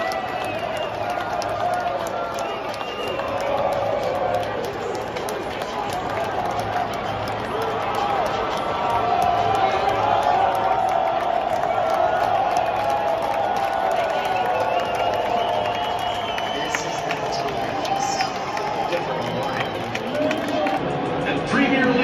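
A large crowd of fans sings and chants loudly in a big echoing stadium.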